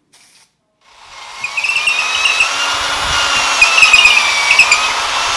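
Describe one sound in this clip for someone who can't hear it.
A power drill whirs as it bores into wood.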